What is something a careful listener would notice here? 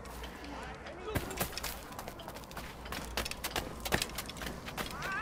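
Quick footsteps patter up stone steps.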